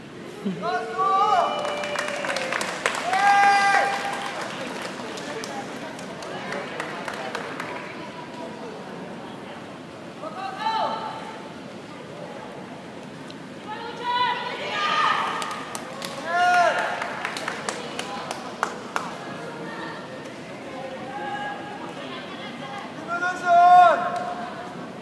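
Players shout loudly to each other in a large echoing hall.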